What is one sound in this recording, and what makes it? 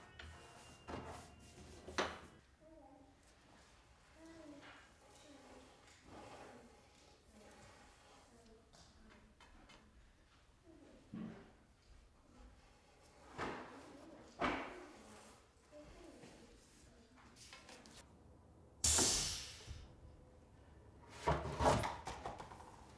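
A tool knocks and scrapes against wood close by.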